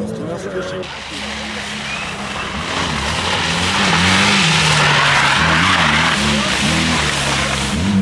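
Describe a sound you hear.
Tyres hiss and spray over wet, slushy ground.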